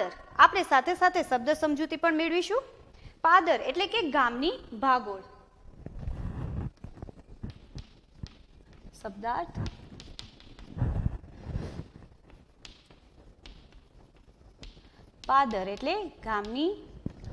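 A young woman speaks calmly and clearly, as if teaching.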